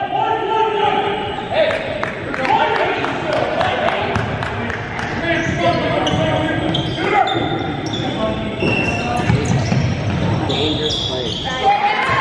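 Basketball shoes squeak sharply on a hardwood court in a large echoing gym.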